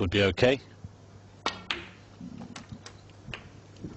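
A cue strikes a snooker ball with a sharp click.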